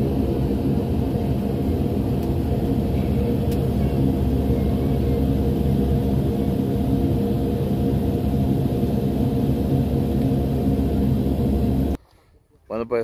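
Aircraft engines roar steadily, heard from inside the cabin.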